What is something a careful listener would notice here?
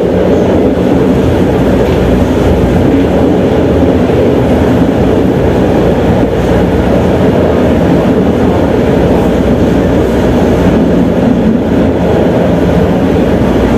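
A tram rumbles steadily along the tracks.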